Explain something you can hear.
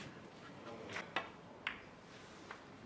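Snooker balls click together sharply.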